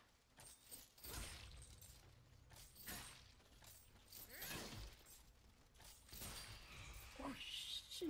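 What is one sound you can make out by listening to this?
Footsteps rustle through grass and leaves.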